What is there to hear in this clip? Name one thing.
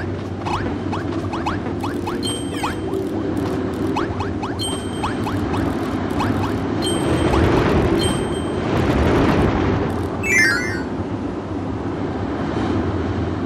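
Playful background music plays steadily.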